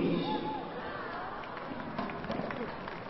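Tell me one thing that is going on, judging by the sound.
A gymnast lands with a thud on a mat.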